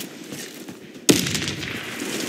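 An ice axe strikes a body with a thud.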